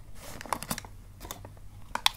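Tape crackles as it is pulled and pressed down.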